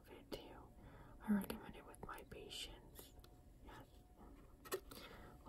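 A young woman whispers softly close to a microphone.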